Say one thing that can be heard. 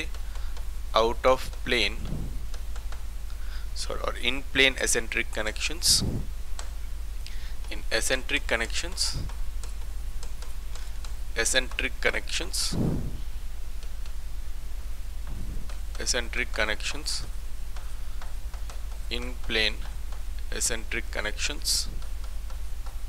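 A man speaks calmly, as if explaining, close by.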